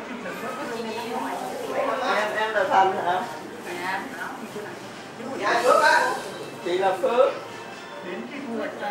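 An older woman answers nearby.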